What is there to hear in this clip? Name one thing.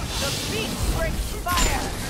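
A gun fires a shot.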